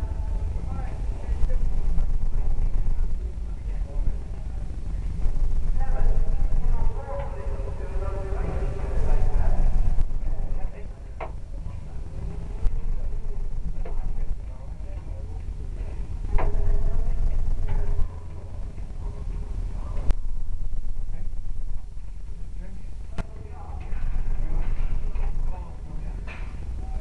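Wind rumbles steadily across a microphone outdoors.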